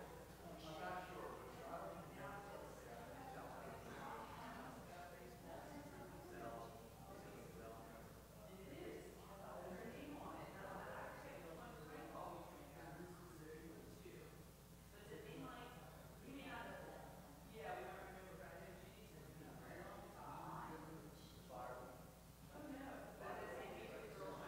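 Several elderly women and men chat at the same time nearby, in a room with a slight echo.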